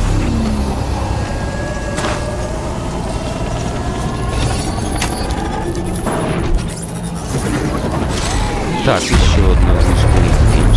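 A mechanical beast rumbles and groans heavily.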